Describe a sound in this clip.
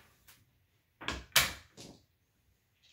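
Casino chips click together on a felt table.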